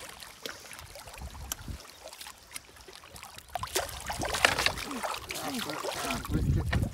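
Water laps gently against rocks at a shore.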